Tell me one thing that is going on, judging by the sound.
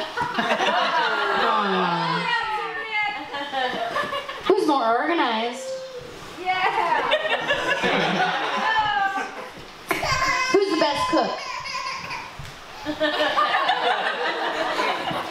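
A crowd of adults laughs and cheers nearby.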